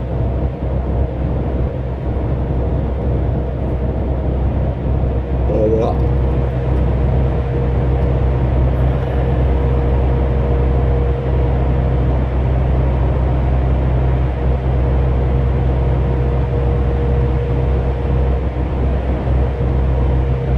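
Tyres roll on a road with a low rumble.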